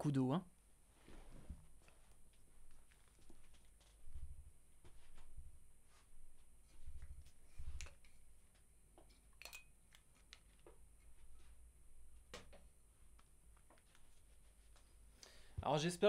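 Soft clicks and taps of equipment sound nearby.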